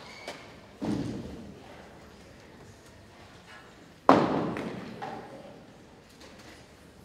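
A string ensemble strikes loud chords that ring out in a large echoing hall.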